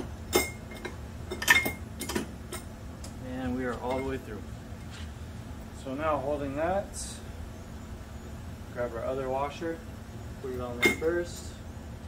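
Metal tools clink and knock against a bike frame.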